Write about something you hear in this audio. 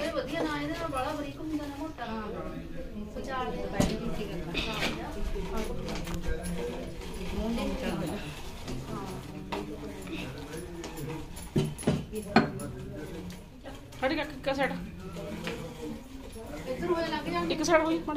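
Women talk to each other close by in a calm, chatty way.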